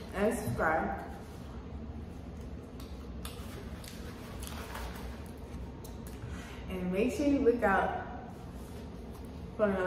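Food crunches and squelches as a young woman chews.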